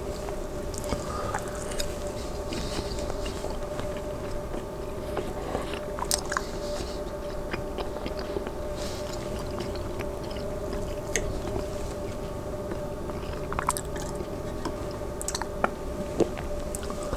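Cutlery clinks and scrapes on a plate.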